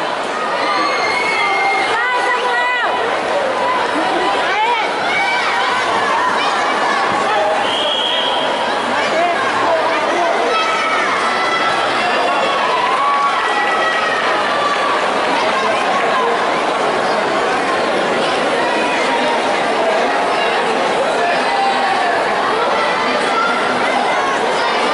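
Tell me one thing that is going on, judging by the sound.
A large crowd of spectators chatters and calls out throughout, echoing in a big hall.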